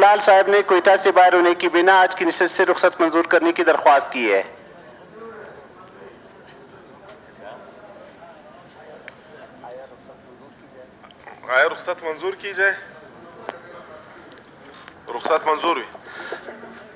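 A man talks quickly and loudly, close by.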